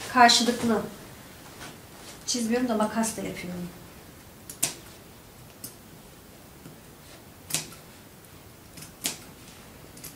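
Scissors snip with sharp little clicks.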